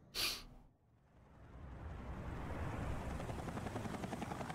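A helicopter's rotor thuds steadily overhead.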